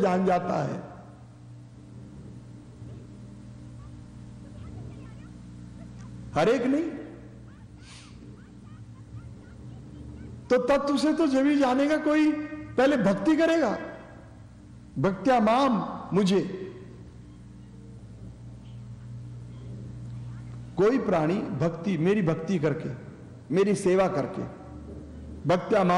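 An elderly man speaks calmly and slowly into a close microphone, with pauses between phrases.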